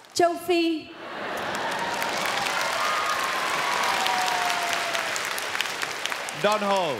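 An audience applauds and cheers.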